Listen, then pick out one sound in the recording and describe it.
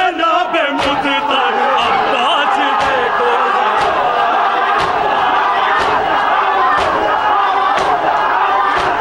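A group of young men sing along in unison.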